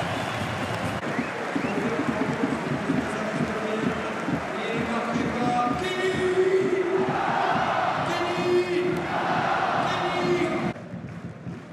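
A crowd sings and chants loudly in a stadium.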